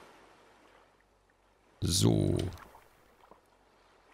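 A lantern is set down on wooden planks with a soft knock.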